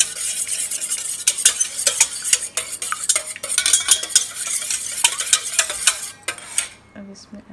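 A whisk beats quickly against a metal bowl.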